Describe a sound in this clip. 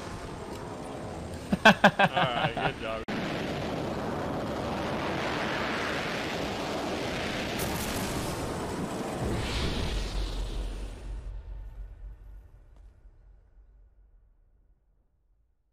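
Wind rushes loudly past during a fast fall, then fades away.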